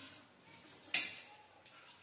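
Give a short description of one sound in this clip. A metal pan clanks against another pan.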